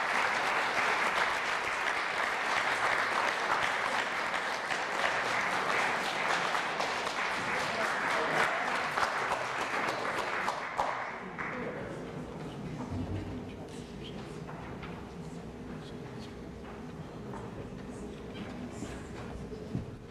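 Footsteps cross a wooden stage in a large hall.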